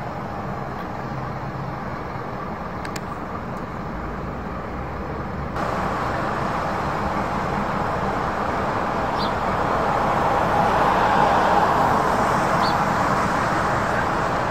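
Traffic rumbles steadily along a busy city road.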